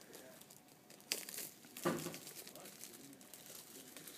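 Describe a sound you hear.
Plastic wrap crinkles as it is pulled off a box.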